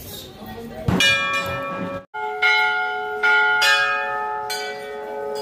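A large metal bell rings out several times with a long ringing tail.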